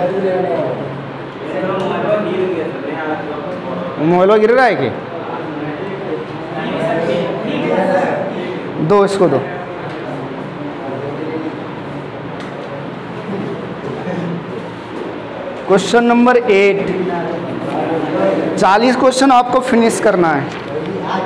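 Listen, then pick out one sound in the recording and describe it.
A man speaks steadily and explains, close to a clip-on microphone.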